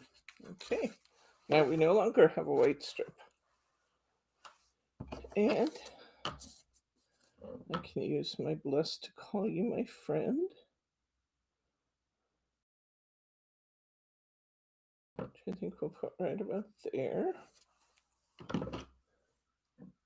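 Paper cards slide and tap on a table.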